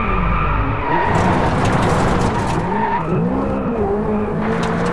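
Tyres screech on the road through the bends.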